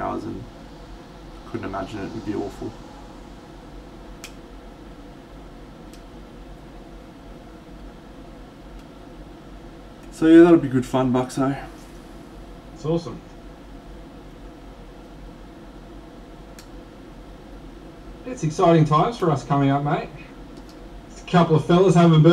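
A man talks casually into a nearby microphone.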